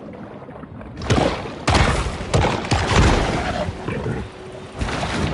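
Water splashes loudly as a shark breaks the surface.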